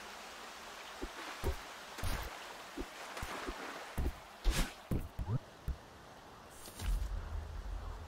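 Short whooshing and thudding game sound effects play.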